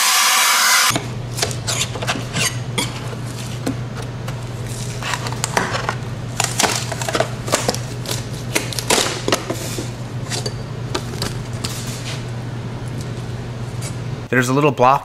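Wooden pieces clatter and knock as they are lifted from a table.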